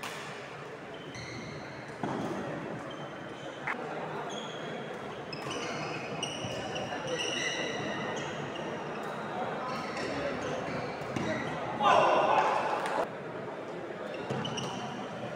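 A racket smacks a shuttlecock back and forth.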